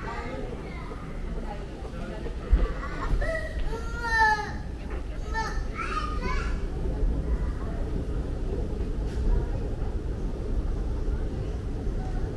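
A moving walkway hums and rumbles steadily.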